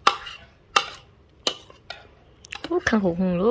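A metal spoon clicks and scrapes against a plate.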